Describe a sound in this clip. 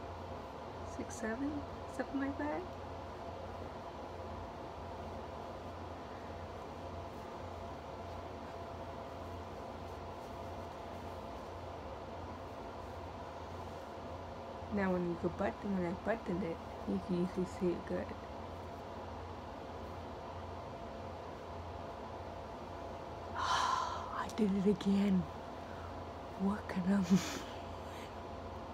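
A woman speaks softly and calmly close by.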